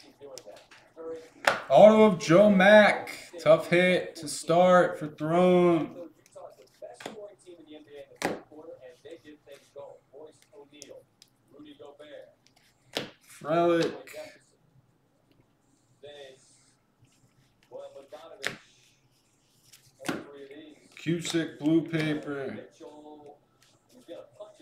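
Trading cards slap and rustle softly as they are flipped through.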